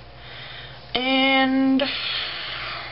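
A young woman makes a long, drawn-out silly vocal sound.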